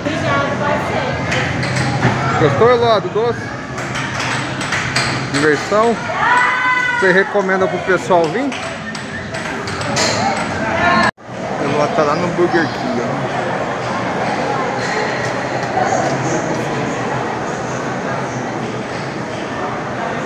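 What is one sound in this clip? A crowd murmurs in a busy echoing hall.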